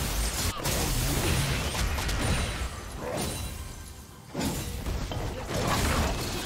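Game spells whoosh and crackle in a fight.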